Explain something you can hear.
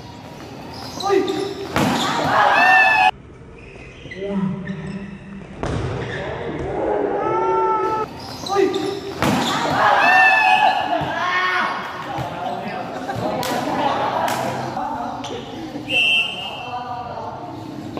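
Spectators cheer and shout in an echoing covered court.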